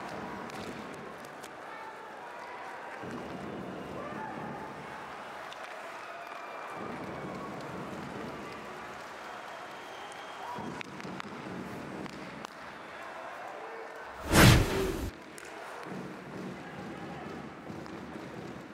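An arena crowd murmurs and cheers.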